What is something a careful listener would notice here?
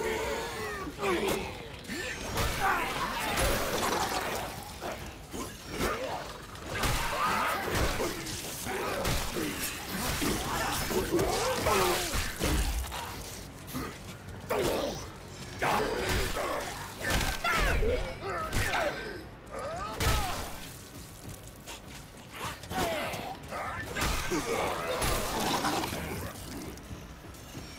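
Zombies growl and shriek.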